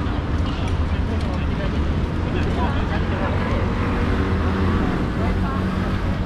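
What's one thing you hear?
A bicycle rolls past close by.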